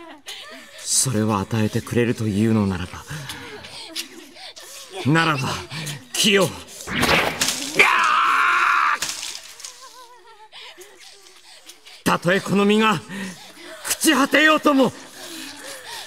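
A young man shouts in anguish.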